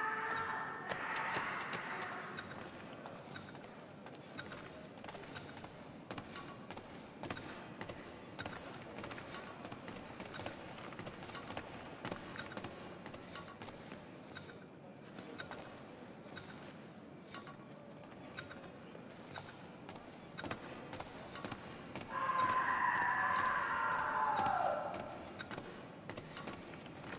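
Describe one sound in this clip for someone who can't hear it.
Footsteps thud quickly on wooden floors and stairs.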